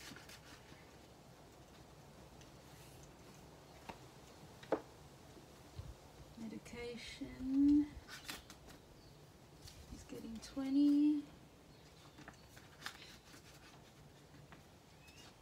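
Plastic sleeves crinkle and rustle as hands handle them.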